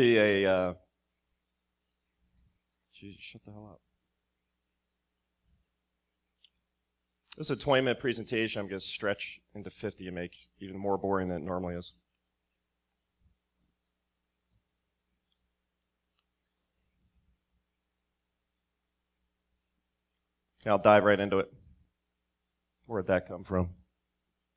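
A man speaks through a microphone in short bursts with long pauses.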